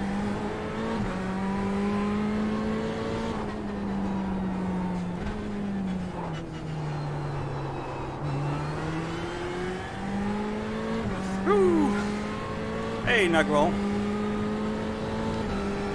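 A racing car engine drones steadily, its pitch rising and falling as the car speeds up and brakes.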